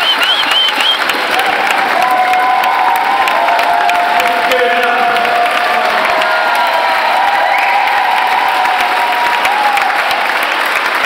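A big band plays lively swing music in a large echoing hall.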